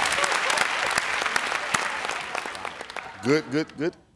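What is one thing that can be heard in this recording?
An audience claps and cheers loudly, then fades.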